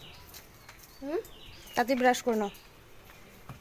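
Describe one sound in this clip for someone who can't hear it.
A young boy speaks briefly close by.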